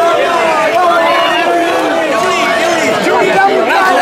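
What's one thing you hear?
A young man shouts excitedly nearby.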